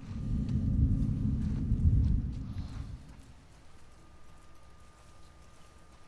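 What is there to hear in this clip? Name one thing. Tall grass rustles as a crouching person pushes through it.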